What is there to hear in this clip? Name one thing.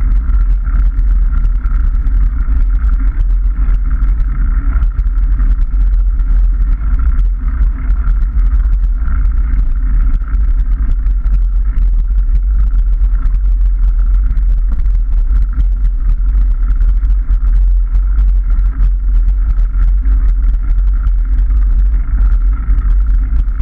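Wind buffets loudly against a microphone.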